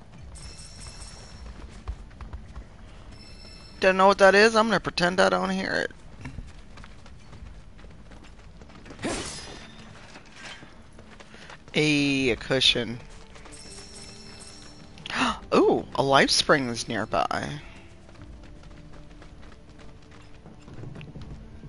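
Footsteps run over dirt and gravel.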